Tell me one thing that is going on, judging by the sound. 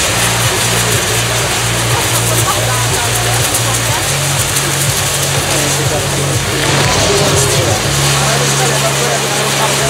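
Fireworks pop and bang.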